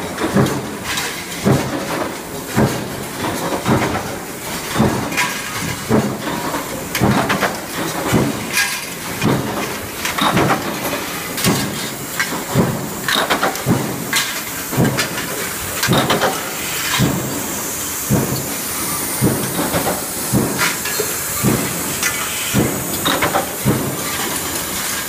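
Punch presses thump repeatedly throughout a busy factory floor.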